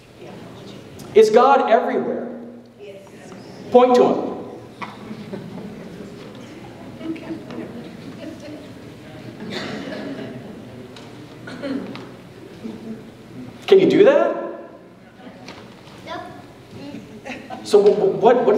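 A man lectures through a microphone in a large echoing hall, speaking with animation.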